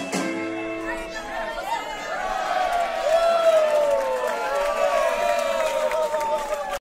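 A band's drums and upright bass play along.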